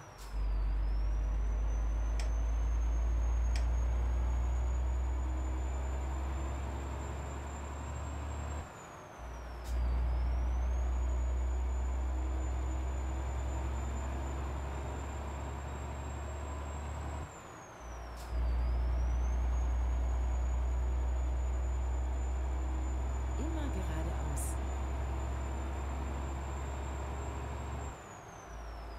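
A heavy truck engine drones low and steady as it gathers speed, dropping away briefly at each gear change.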